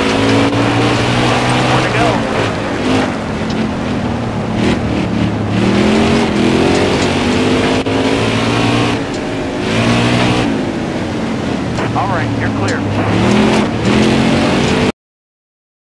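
A race car engine roars and changes pitch as it speeds around a track.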